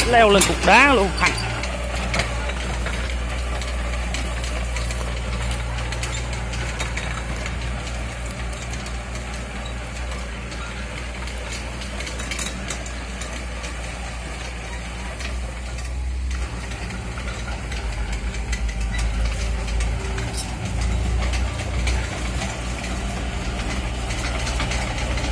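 Excavator tracks clank and crunch over rubble.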